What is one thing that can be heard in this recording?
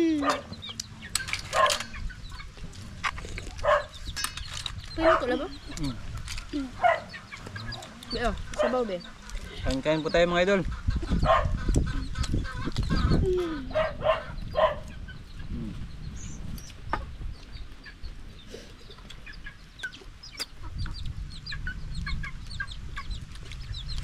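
Crab shells crack and crunch as people eat.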